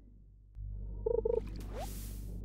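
A short chiming tune plays as a fish is caught.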